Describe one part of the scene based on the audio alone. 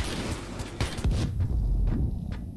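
A stun grenade goes off with a loud bang.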